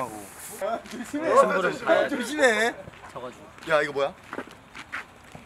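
A young man speaks cheerfully and close up.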